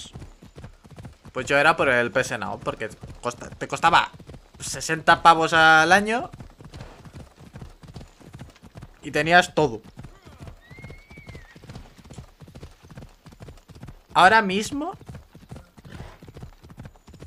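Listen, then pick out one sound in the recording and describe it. A horse's hooves gallop on a dirt path.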